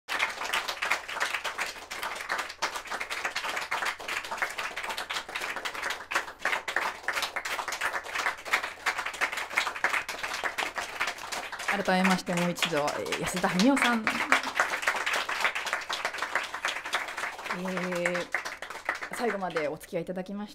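An audience claps and cheers in a small room.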